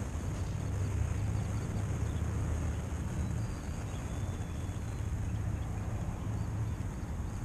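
A fishing reel whirs softly as its handle is cranked.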